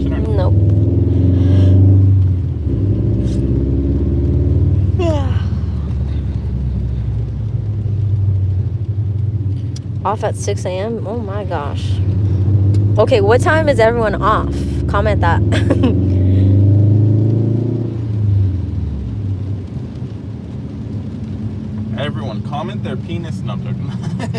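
A car engine hums steadily and rises and falls as it revs.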